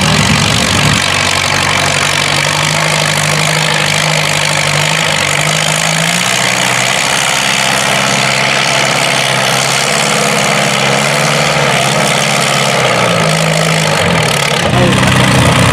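A tractor engine roars steadily under heavy load.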